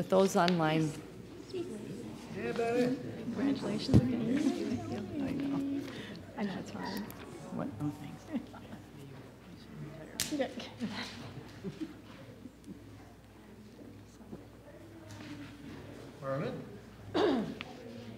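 A crowd of people murmur and chat as they greet each other.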